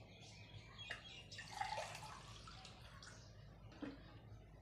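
Liquid pours from a bottle into a cup.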